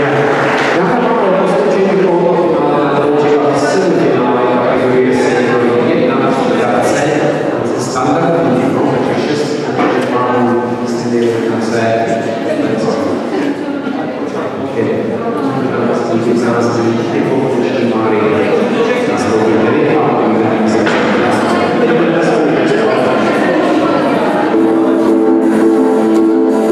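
A crowd of adults chatters in a large echoing hall.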